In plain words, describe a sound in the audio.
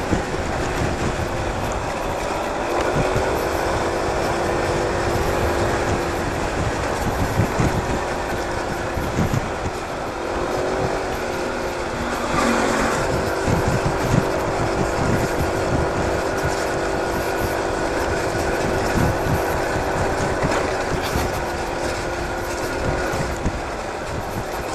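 Wind rumbles and buffets loudly.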